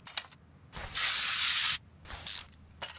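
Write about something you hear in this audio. A spray can hisses in a short burst.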